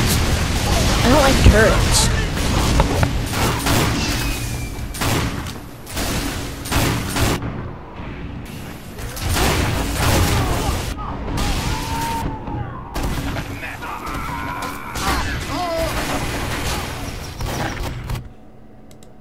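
Gunshots and explosions crack and boom in quick bursts.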